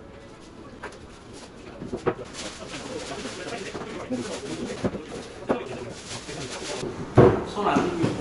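Large boards knock and clatter as they are handled.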